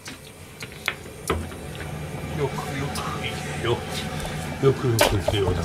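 Oil starts to sizzle in a hot wok.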